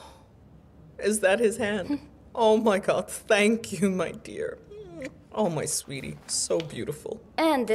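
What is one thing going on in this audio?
A middle-aged woman speaks with animation.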